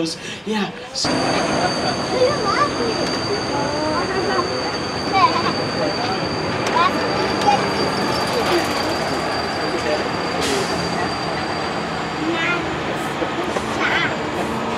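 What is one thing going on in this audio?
An open tram hums and rattles steadily as it rolls along.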